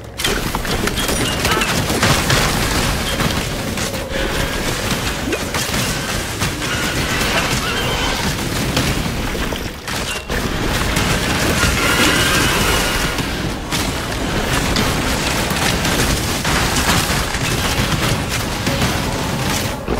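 Fiery spells crackle and burst in quick succession.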